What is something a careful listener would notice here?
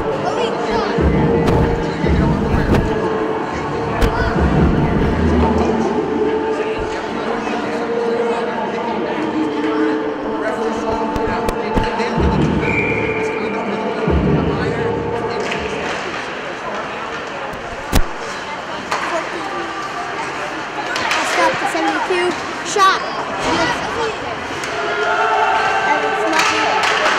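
A crowd murmurs and chatters in a large echoing rink.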